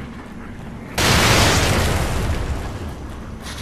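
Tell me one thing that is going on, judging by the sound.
A loud blast roars and slowly fades.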